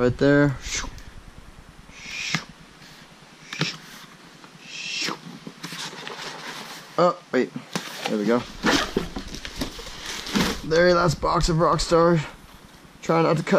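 Cardboard rustles and scrapes as box flaps are folded.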